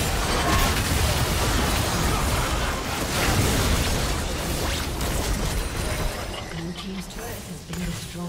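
Video game battle effects crackle, whoosh and boom in quick bursts.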